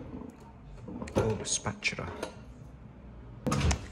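Metal kitchen utensils clink in a drawer.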